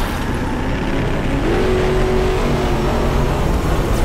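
A buggy engine roars.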